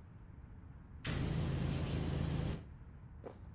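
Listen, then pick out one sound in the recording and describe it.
A pressure washer sprays a loud, hissing jet of water.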